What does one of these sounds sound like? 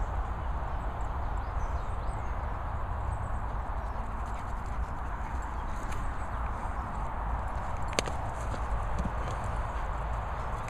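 Wind rushes steadily outdoors.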